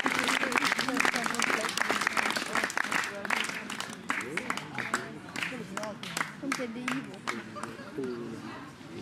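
A crowd claps rapidly outdoors.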